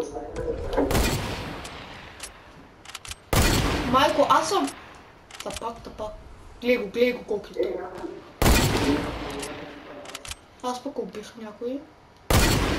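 A rifle fires loud single shots that boom and echo away.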